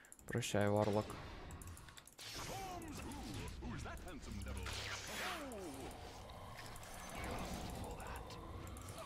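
Magic blasts and explosions burst from a video game.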